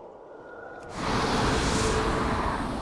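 A magical portal whooshes and hums.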